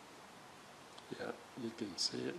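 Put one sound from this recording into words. A screwdriver scrapes and clicks against a small metal part.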